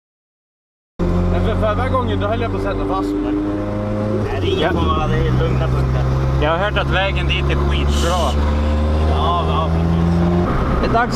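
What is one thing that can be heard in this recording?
A car engine hums steadily from inside the moving car.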